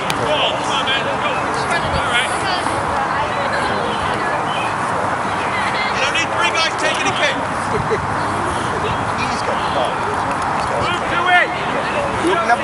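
Young players and onlookers shout and call out across an open field outdoors.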